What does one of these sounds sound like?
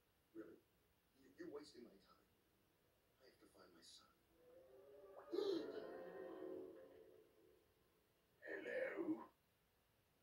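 A film soundtrack plays through a television speaker.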